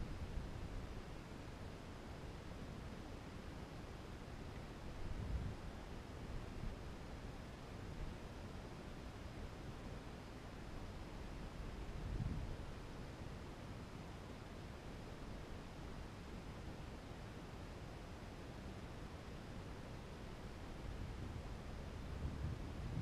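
Wind rumbles and buffets steadily, with occasional stronger gusts.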